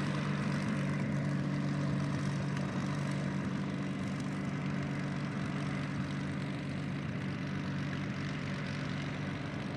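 A propeller plane's piston engine rumbles and drones steadily close by as it taxis.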